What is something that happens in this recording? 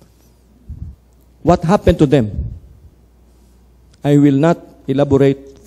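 A middle-aged man speaks calmly and slowly into a close microphone, pausing between phrases.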